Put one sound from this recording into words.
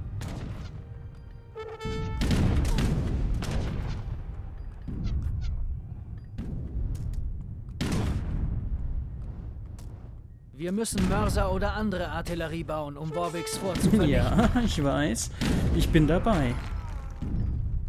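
Cannons boom in a battle.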